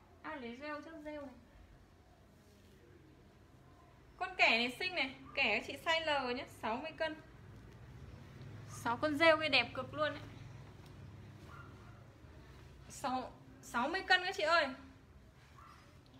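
Clothes rustle as a young woman handles them.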